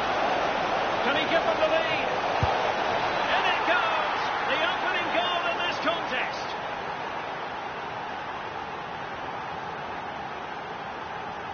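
A stadium crowd roars and cheers steadily, then quiets a little.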